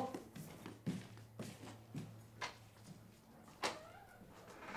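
Footsteps thud across a wooden floor.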